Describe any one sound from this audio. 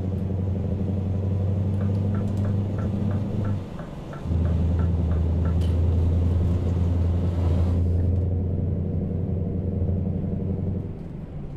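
A diesel truck engine drones from inside the cab while cruising on a highway.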